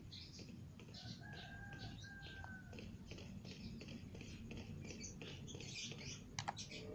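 Footsteps run across rough ground.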